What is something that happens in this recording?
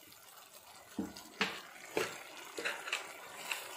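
A wooden spatula scrapes and taps against a metal pan.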